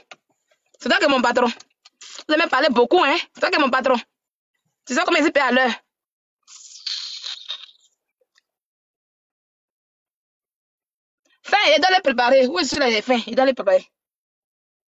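A woman speaks with animation over an online call, in bursts with long pauses.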